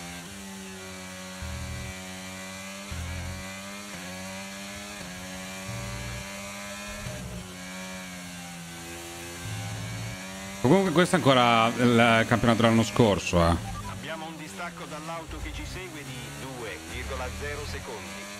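A racing car engine whines loudly, rising and falling as it shifts gears.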